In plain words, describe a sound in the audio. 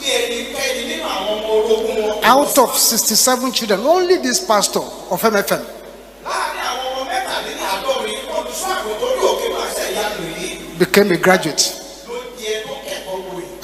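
A man preaches with animation into a microphone.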